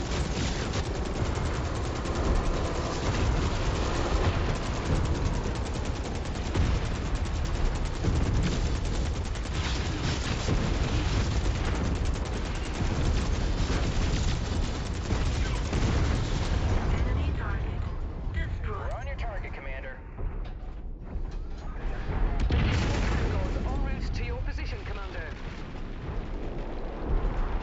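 A deep engine rumble drones steadily.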